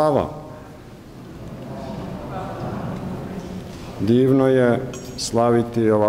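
An elderly man chants in a deep, sustained voice through a microphone in a large echoing hall.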